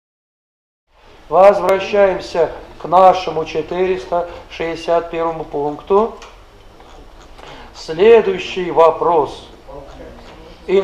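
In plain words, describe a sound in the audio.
A middle-aged man speaks calmly and close by, in a room with a slight echo.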